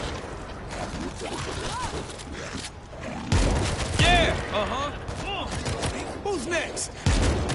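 Zombies groan and moan.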